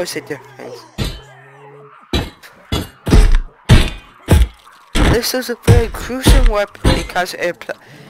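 Heavy blows thud wetly into flesh, again and again.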